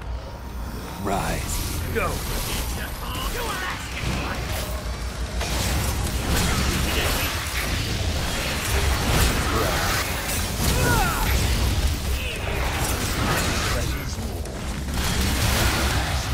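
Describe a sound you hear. Blades slash and clang in quick bursts.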